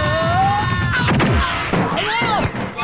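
A barrel topples over with a heavy thud.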